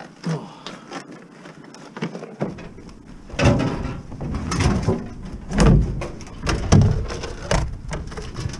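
A plastic crate knocks and clatters on the ground.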